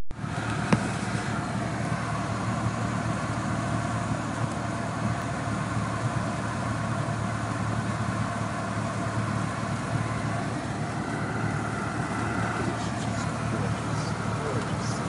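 Wind rushes past a small plane.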